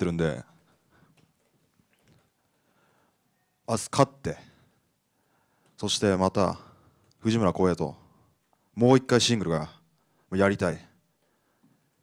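A young man speaks calmly into a microphone in short phrases with pauses.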